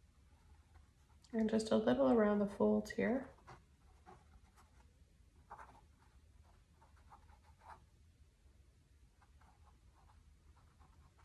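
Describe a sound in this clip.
A paintbrush strokes across canvas.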